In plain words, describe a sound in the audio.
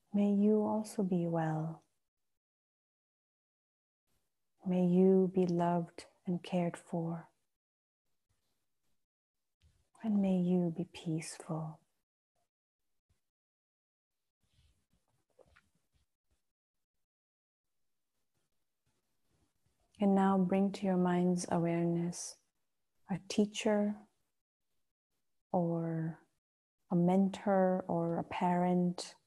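A woman speaks slowly and calmly through a microphone, with long pauses.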